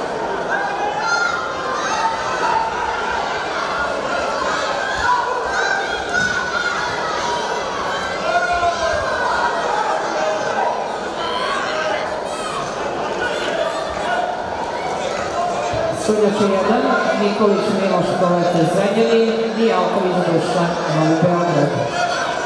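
A crowd in a large echoing hall cheers and shouts throughout.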